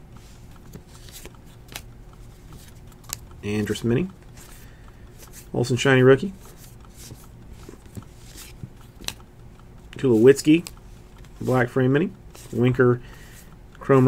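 Trading cards rustle and slide softly as they are flipped through by hand.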